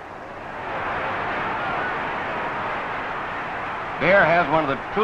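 A large crowd roars outdoors.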